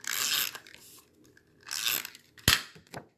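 Paper rustles and slides under fingers.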